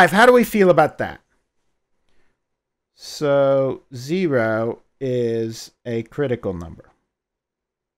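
An older man explains calmly as in a lecture, heard close through a headset microphone.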